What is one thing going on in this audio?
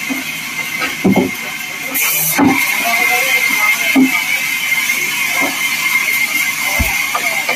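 Wooden planks knock against each other as they are handled.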